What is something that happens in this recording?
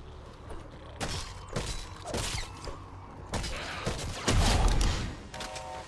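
A pickaxe strikes with sharp, heavy thuds.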